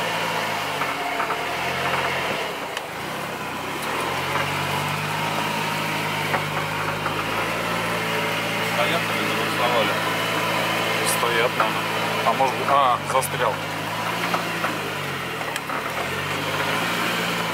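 A car engine hums and revs steadily from inside the cabin.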